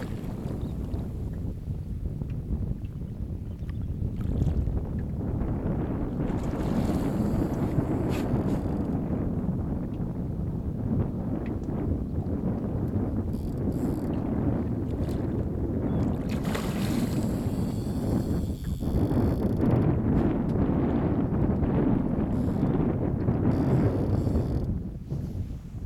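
Small waves lap against a boat's hull.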